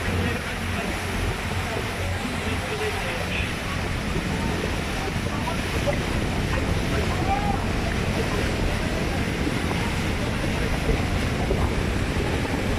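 Gulls call faintly overhead.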